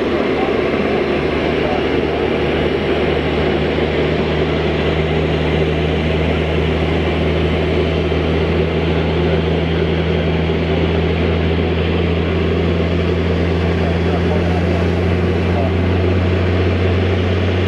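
A jet engine's low hum builds as it spools up and then holds steady.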